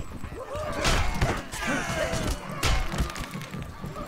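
Blows thud and clash in a fight.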